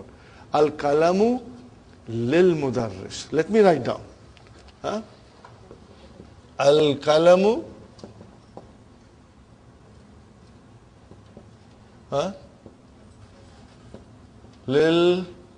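An older man speaks clearly in bursts, explaining with pauses.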